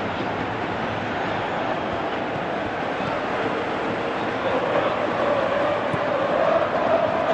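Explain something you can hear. A large stadium crowd roars steadily, swelling louder toward the end.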